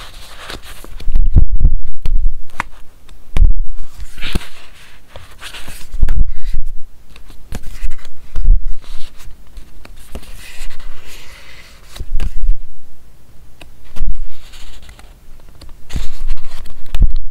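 Pages flap and thump softly against a book.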